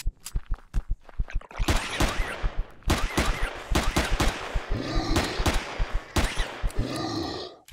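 A creature growls and roars.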